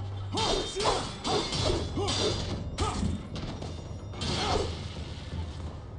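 A sword swishes through the air in quick, repeated swings.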